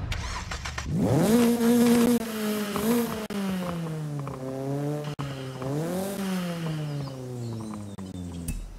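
A car engine idles and rises and falls in pitch.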